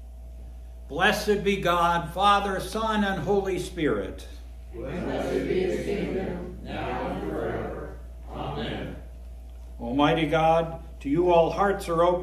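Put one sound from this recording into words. An elderly man speaks calmly, reading aloud in an echoing room.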